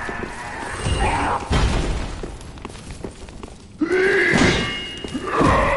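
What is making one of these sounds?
Footsteps clank on the rungs of a ladder.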